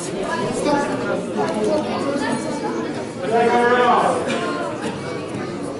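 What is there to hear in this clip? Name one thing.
A crowd of children and adults shouts and cheers nearby in an echoing hall.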